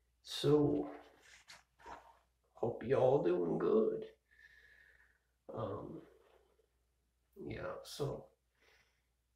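A young man speaks casually, close up.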